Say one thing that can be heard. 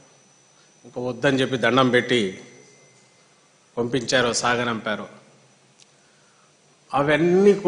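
A man speaks with emphasis into a microphone, in short bursts with pauses.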